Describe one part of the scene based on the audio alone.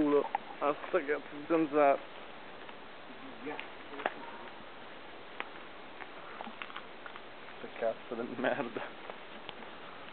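Footsteps crunch through dry undergrowth.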